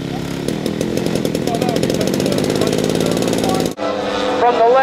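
A small model airplane engine runs loudly close by with a rapid buzzing beat.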